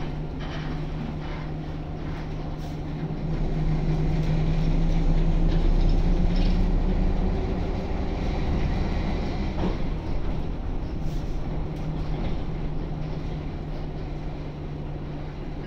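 A bus engine hums steadily and rises in loudness for a while.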